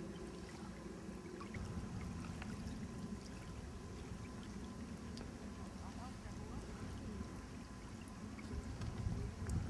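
Small waves lap against a pebbly lakeshore.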